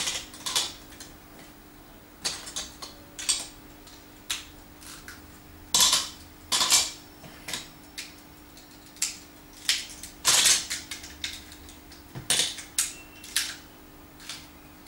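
Plastic building pieces clatter and click as a child sorts and snaps them together.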